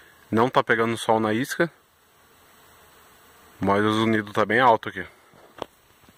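Bees buzz softly around a hive.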